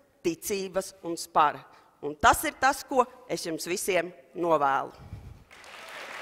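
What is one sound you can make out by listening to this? A woman speaks calmly into a microphone in a large hall.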